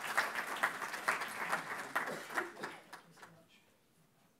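An audience applauds in a room, and the clapping dies away.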